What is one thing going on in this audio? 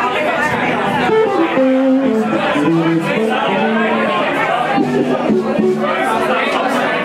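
An electric guitar plays a melody.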